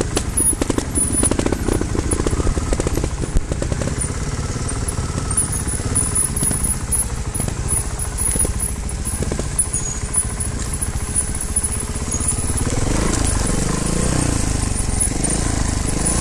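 A dirt bike engine putters and revs close by.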